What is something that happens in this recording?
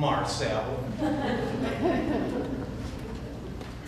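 A man speaks loudly on a stage in a large hall.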